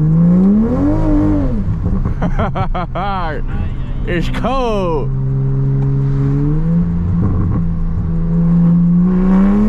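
A sports car engine revs hard and roars.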